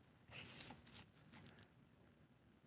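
A small toy car rattles and scrapes softly as a hand turns it on a mat.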